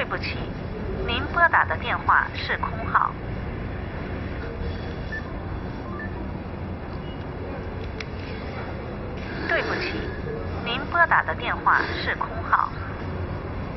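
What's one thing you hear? A young woman speaks calmly into a phone nearby.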